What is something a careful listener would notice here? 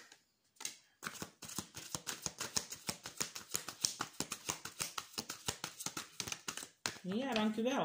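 Playing cards rustle and flick quickly as they are shuffled.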